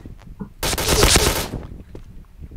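A rapid burst of gunfire rings out.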